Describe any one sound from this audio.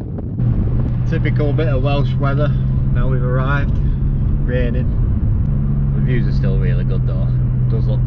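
A young man talks with animation close by, inside a car.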